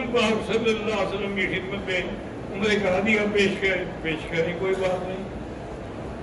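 An elderly man speaks slowly and solemnly into a microphone in a large echoing hall.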